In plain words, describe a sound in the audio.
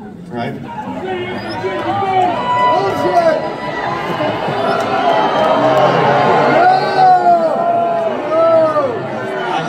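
A rock band plays loudly through big loudspeakers, with a guitar bending notes.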